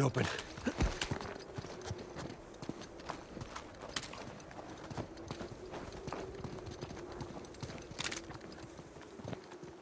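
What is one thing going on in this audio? Footsteps crunch on snow and stone.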